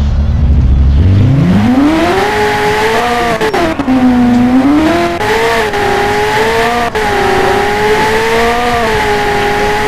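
A sports car engine revs up and roars at speed, its pitch rising and falling with gear changes.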